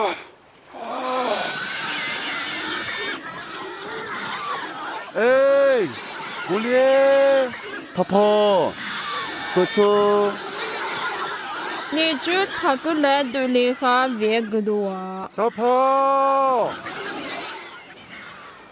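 Pigs squeal loudly and grunt in a herd.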